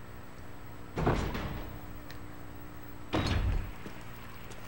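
A heavy door opens with a loud creak and thud.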